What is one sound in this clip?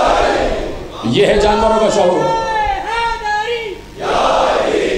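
A man recites in a singing chant over a microphone.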